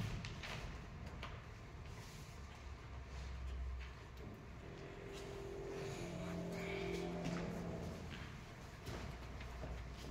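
Bare feet thump and shuffle on a padded mat.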